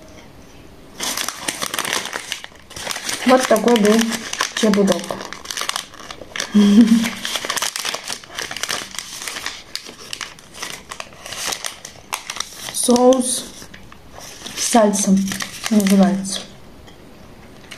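A plastic snack wrapper crinkles loudly.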